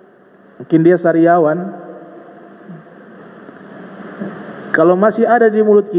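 A man speaks into a microphone with a chanting, drawn-out voice, in an echoing room.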